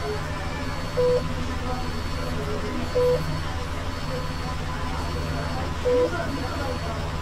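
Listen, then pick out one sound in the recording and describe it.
A ticket machine beeps briefly a few times.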